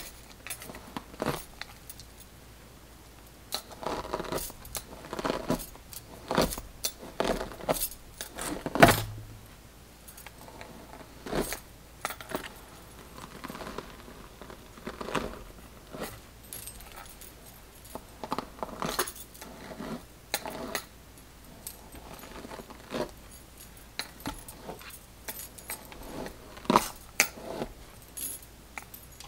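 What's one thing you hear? A brush swishes through hair in repeated strokes.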